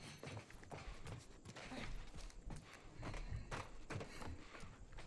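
Footsteps clang on metal stairs at a steady pace.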